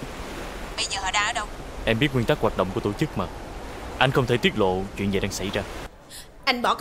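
A young man talks calmly on a phone.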